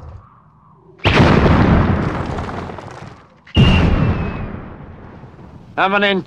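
Loud explosions boom and roar, then fade.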